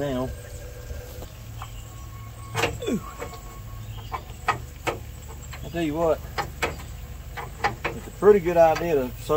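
A man speaks casually nearby.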